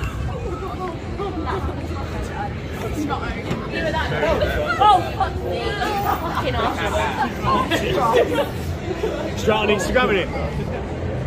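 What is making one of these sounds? Several young women chatter and laugh outdoors.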